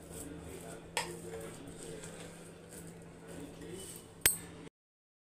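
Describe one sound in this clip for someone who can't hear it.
A metal spoon clinks against a glass bowl.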